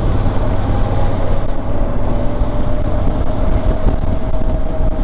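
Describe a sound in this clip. Wind rushes loudly past a motorcycle rider.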